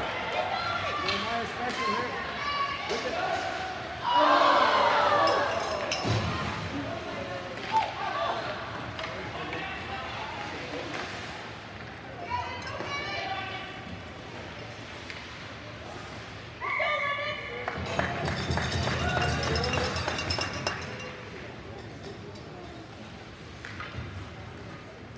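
Spectators chatter and cheer close by in an echoing rink.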